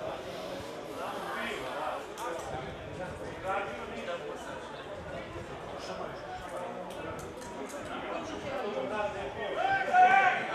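Players grunt and thud together as they push in a scrum.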